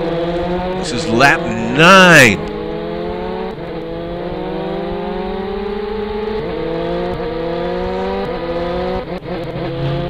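A motorcycle engine drones steadily, its pitch slowly climbing as it speeds up.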